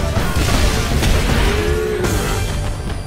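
A blast sends wooden blocks crashing and tumbling.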